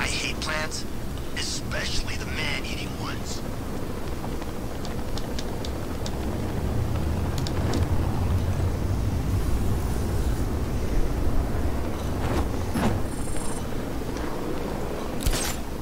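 Wind rushes steadily past as a figure glides through the air.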